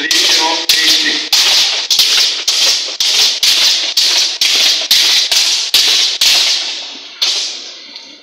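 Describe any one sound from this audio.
Wooden sticks clack rapidly against shields in an echoing hall.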